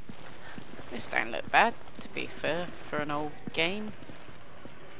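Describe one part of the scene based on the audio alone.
A young woman talks animatedly and close into a microphone.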